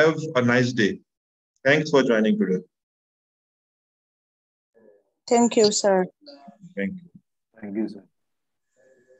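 A man speaks calmly through an online call, in short bursts with pauses.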